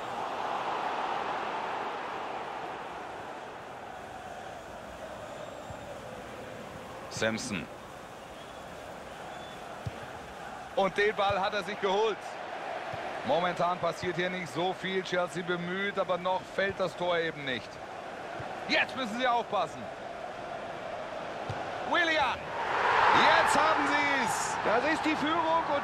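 A stadium crowd murmurs and cheers steadily, swelling loudly near the end.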